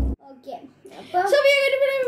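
A boy speaks with animation close to a microphone.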